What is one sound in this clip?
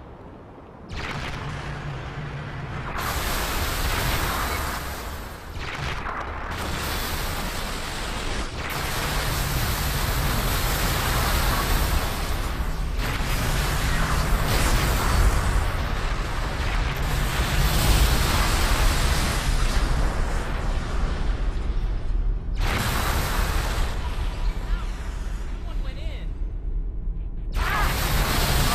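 A weapon fires bursts of shots.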